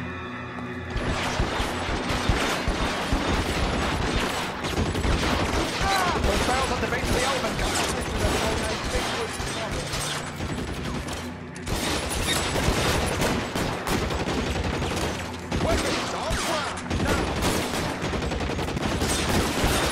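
Gunshots crack in rapid bursts during a firefight.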